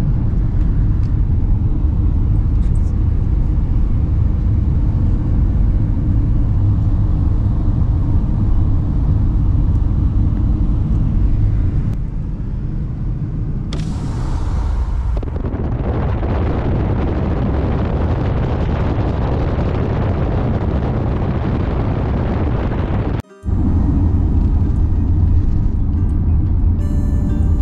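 A car drives along a road, heard from inside as a steady low rumble of engine and tyres.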